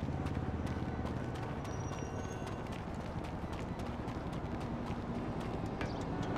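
Footsteps crunch quickly on gravel.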